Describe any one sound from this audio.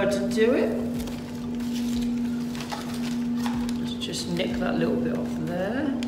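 Masking paper crinkles and rustles as it is peeled away.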